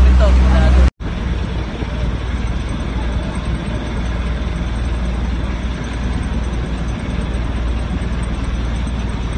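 A boat engine rumbles steadily over the water.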